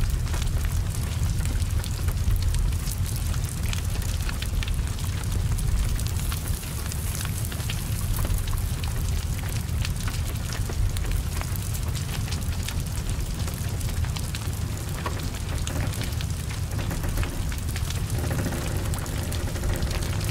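A car fire roars and crackles steadily.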